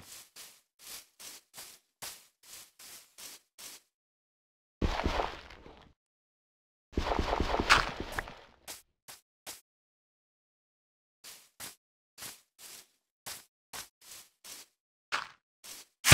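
Footsteps thud softly and steadily on grass.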